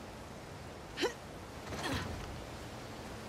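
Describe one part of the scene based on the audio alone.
A person scrambles up over a ledge with a thud.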